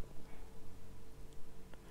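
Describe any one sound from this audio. Liquid pours into a measuring spoon.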